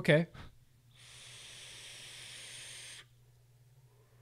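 A man draws a long hissing pull on a vape.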